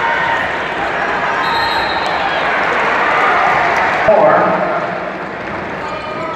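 A crowd roars loudly and then dies down.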